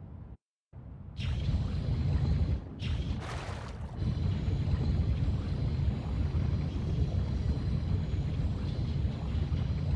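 A small underwater machine hums with a low, steady rumble.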